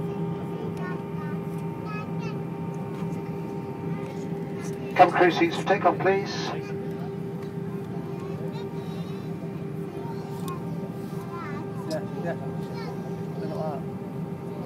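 The jet engines of an Airbus airliner hum steadily as it taxis, heard from inside the cabin.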